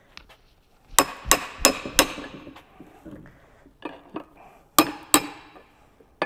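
A hammer strikes metal with sharp, ringing clangs.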